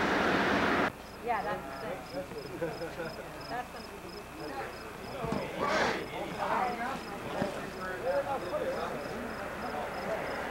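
Adult men talk calmly outdoors nearby.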